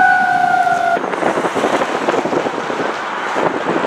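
A heavy truck's engine rumbles loudly close by.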